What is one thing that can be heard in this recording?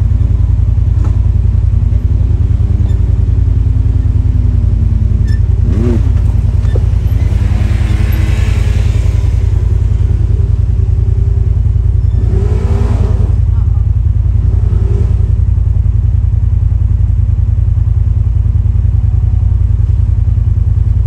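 An off-road vehicle engine rumbles loudly nearby.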